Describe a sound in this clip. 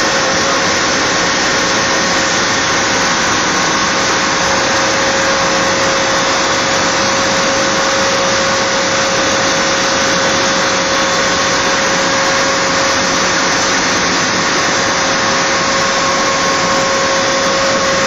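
A large diesel engine runs with a loud, steady roar and a high whine.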